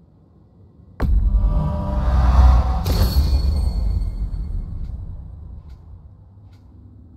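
A loud whooshing chime swells and slowly fades.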